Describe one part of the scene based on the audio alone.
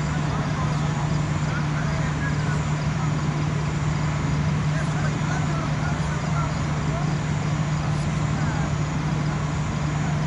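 Men call out faintly across an open outdoor field.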